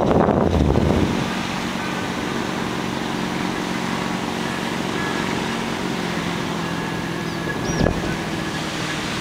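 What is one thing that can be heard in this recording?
A motorboat engine drones steadily far below.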